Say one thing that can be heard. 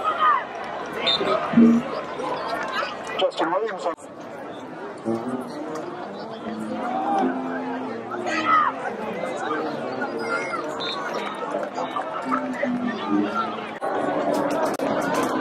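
A crowd of spectators cheers and shouts outdoors.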